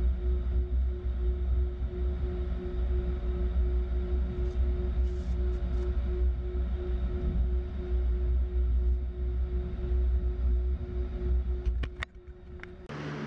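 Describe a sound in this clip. Jet engines rumble, heard from inside an A-10 cockpit.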